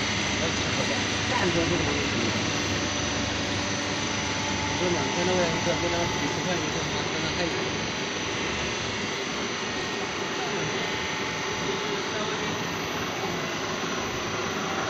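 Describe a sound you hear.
Industrial machines hum and whir steadily.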